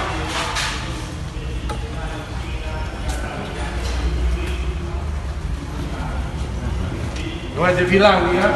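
Men talk nearby in low voices.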